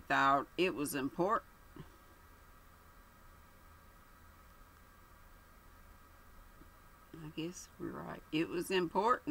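An older woman speaks calmly into a nearby microphone, pausing between phrases.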